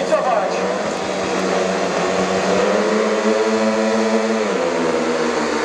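Several motorcycle engines rev high and steady while waiting to start.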